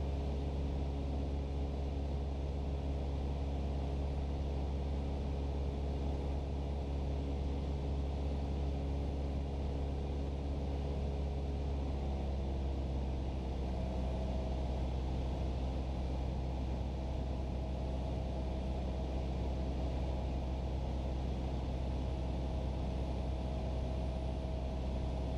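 A light aircraft's propeller engine drones loudly and steadily inside the cockpit.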